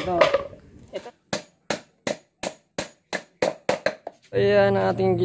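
A hammer strikes wood in quick, sharp knocks.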